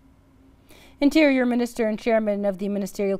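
A woman speaks calmly and clearly into a microphone, reading out.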